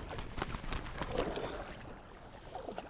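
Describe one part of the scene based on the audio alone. A bird flaps its wings rapidly.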